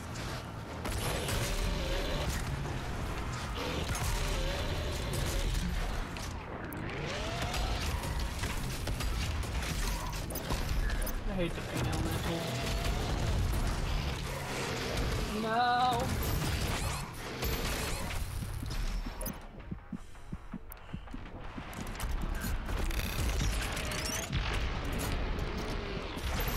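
Monsters roar and growl.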